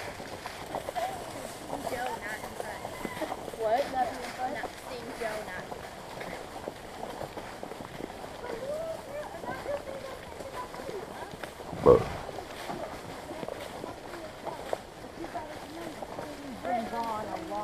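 Riders ahead talk faintly at a distance.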